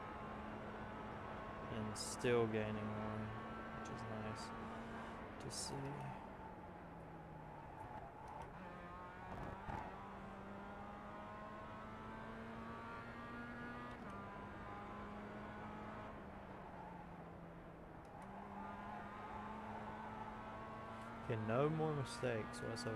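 A racing car engine hums steadily and shifts pitch as the car speeds around a track.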